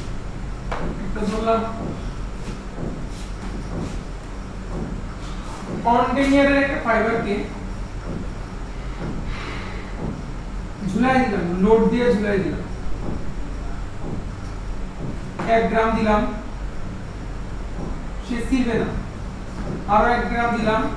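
A man speaks calmly, pausing often.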